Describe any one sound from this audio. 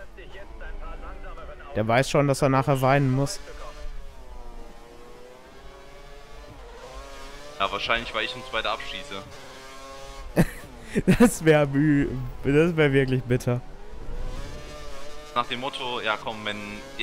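A racing car engine screams, revving up and down through the gears.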